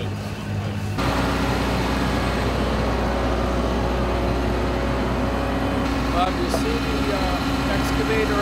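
A machine engine hums steadily.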